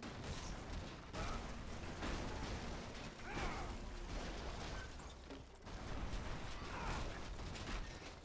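Debris crumbles and rumbles down.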